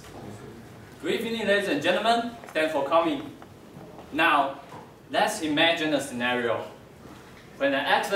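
A young man speaks with animation in an echoing hall.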